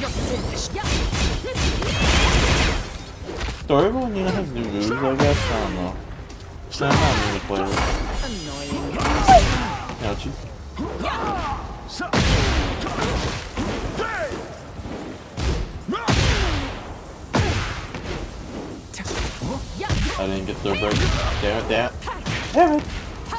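Punches and kicks land with sharp smacks and thuds.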